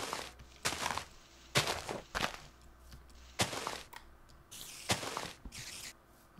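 Pick blows chip at stone in short, sharp bursts.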